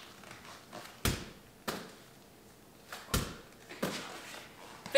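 A ball thumps against a wall.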